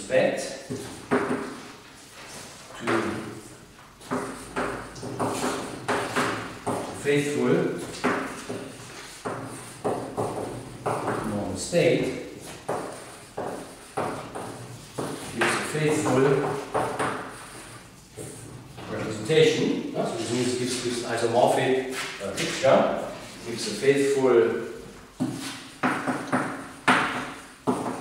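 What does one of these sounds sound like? A man lectures calmly.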